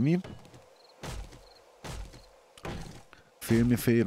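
A club thuds repeatedly against a tree trunk.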